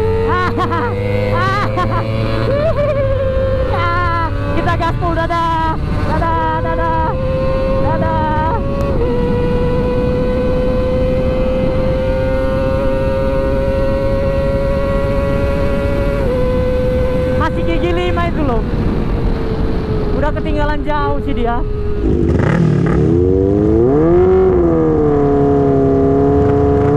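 A motorcycle engine roars close by, revving up and dropping with each gear change.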